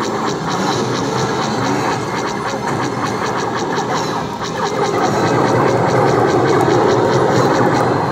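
Explosions rumble from an arcade game.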